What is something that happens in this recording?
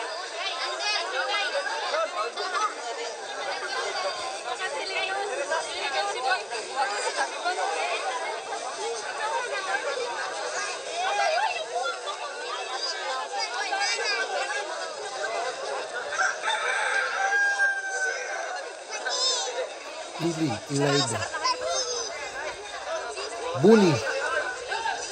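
A crowd of men, women and children chatters and calls out all around, outdoors.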